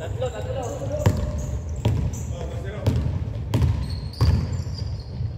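A basketball bounces on a wooden court, echoing in a large hall.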